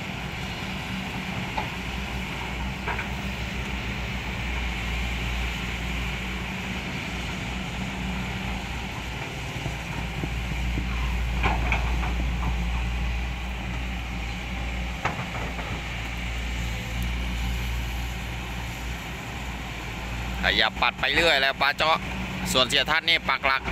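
Diesel engines of hydraulic excavators rumble as the excavators work.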